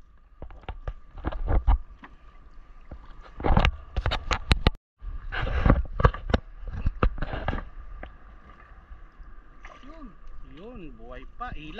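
Water laps and splashes against a wooden boat.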